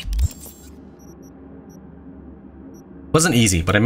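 Soft electronic beeps chime as a menu is clicked through.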